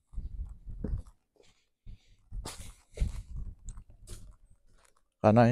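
Footsteps scuff down concrete steps outdoors.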